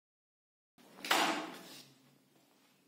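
A woman knocks on a door.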